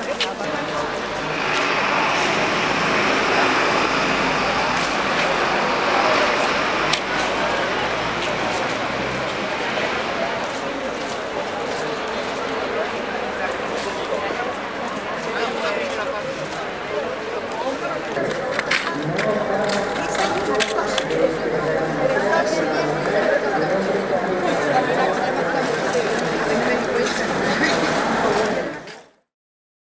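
A crowd of men and women talk and murmur nearby outdoors.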